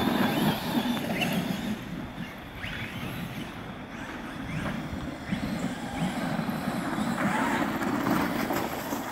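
Small electric motors whine and rev as remote-control cars race by.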